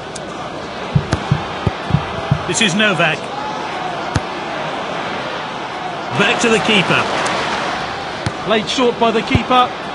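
A football is kicked with short, dull thumps.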